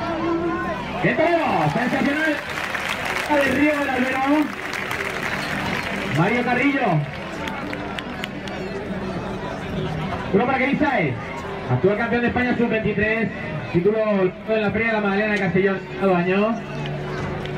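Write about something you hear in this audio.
People in a crowd shout and cheer loudly in bursts.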